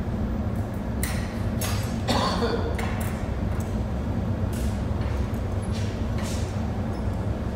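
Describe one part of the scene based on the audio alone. Metal tools clink and scrape against hot glass.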